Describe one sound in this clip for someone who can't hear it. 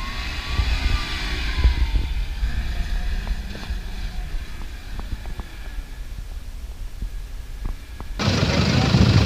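An engine revs as a vehicle climbs through sand.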